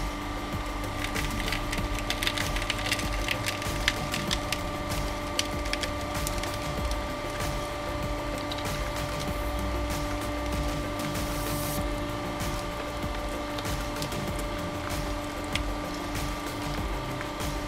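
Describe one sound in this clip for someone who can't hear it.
Fruit crunches and cracks as a press crushes it.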